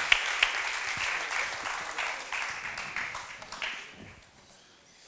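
An audience applauds in an echoing hall.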